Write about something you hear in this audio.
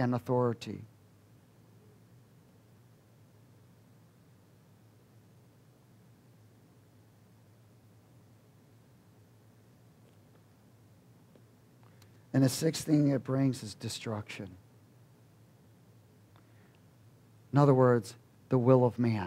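A middle-aged man speaks calmly through a headset microphone, with long pauses.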